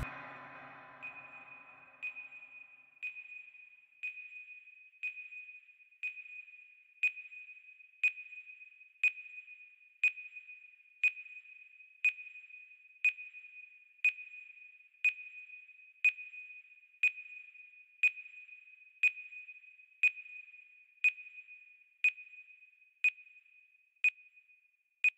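A countdown timer beeps once every second.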